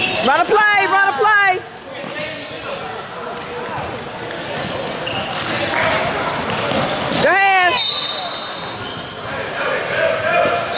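Young men call out to each other across a large echoing hall.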